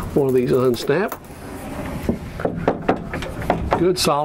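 A wooden door slides shut with a knock.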